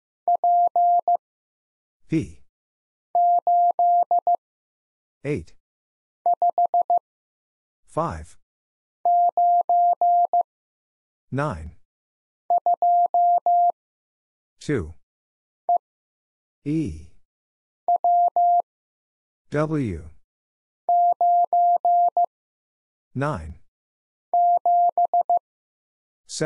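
A telegraph key sends short and long beeps of Morse code in quick bursts.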